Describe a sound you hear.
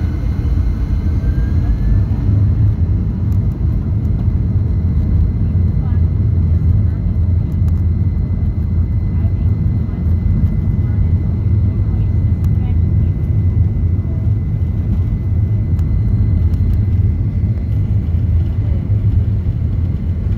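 A jet airliner's engines roar steadily as it speeds along the runway.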